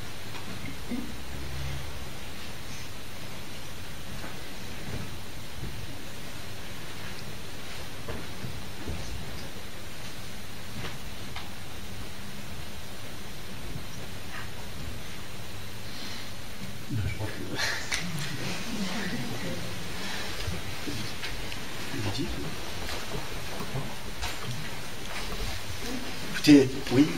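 A middle-aged man speaks calmly and softly, a little way off.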